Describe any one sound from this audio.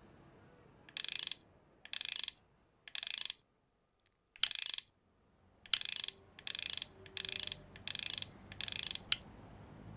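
A combination lock dial clicks as it turns.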